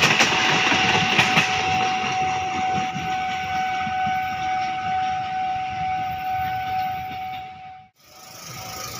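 A train rolls past on the tracks and fades into the distance.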